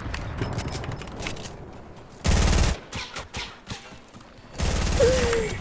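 Footsteps thud quickly on snow in a game.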